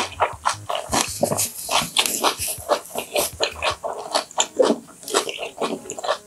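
Paper rustles close to a microphone.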